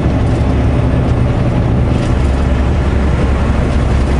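A pickup truck passes close by in the other direction.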